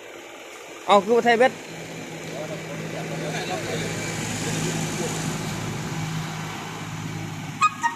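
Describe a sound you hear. A truck engine revs as the truck backs up a ramp.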